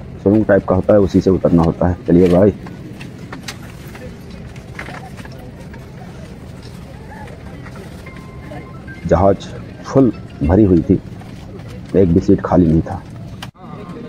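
A man talks loudly and close by, in short bursts.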